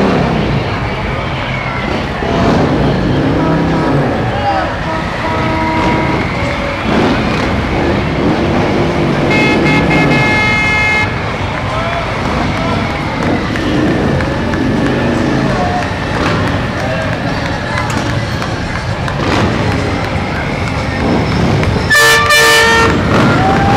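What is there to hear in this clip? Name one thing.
Motorcycle engines rumble and rev as they roll past.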